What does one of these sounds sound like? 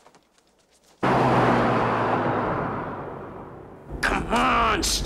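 A car drives along a wet road, its tyres hissing.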